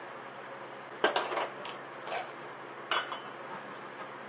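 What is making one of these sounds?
A metal can knocks down onto a table.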